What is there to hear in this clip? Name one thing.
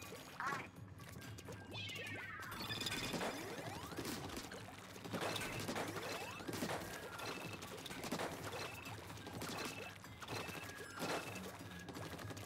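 Wet splattering bursts of a game's ink weapon come in quick runs.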